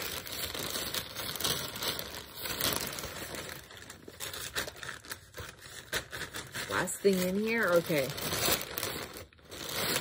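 A plastic mailing bag crinkles and rustles.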